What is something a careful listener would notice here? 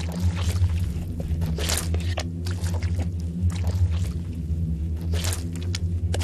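A whisk scrapes and clinks against a bowl as batter is stirred.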